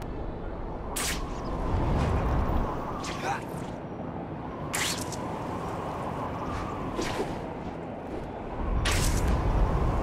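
Sharp web shots snap out now and then.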